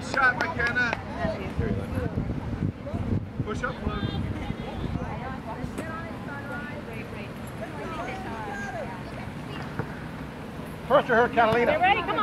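Young girls shout to each other across an open field.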